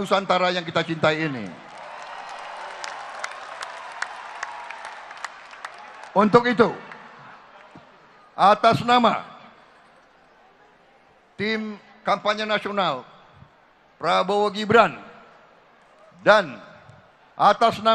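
An elderly man speaks forcefully through a microphone and loudspeakers in a large echoing hall, pausing between phrases.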